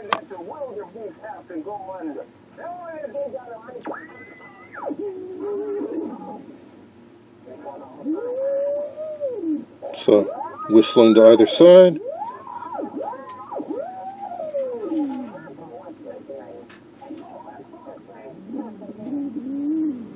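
An electronic circuit gives out warbling, gliding electronic tones and squeals.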